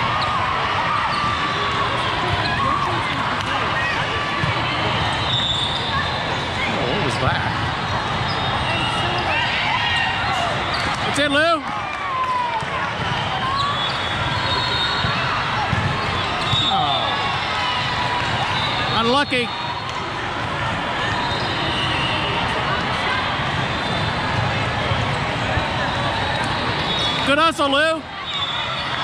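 Players' shoes squeak on the court.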